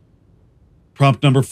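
A man speaks up close and clearly, in short bursts.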